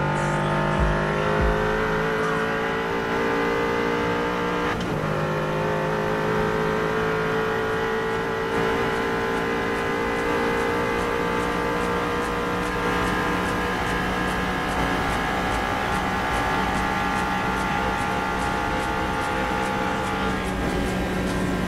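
A car engine roars loudly and steadily at very high speed.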